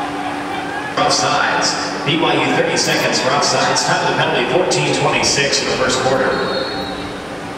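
Spectators on the sideline cheer.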